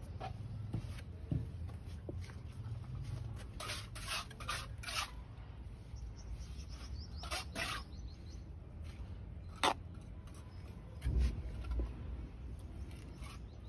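A hand rubs and smooths wet cement with a soft scraping.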